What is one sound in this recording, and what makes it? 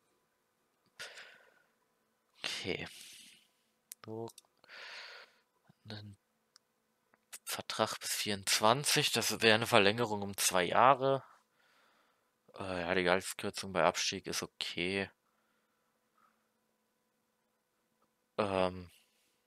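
A young man talks with animation, close to a microphone.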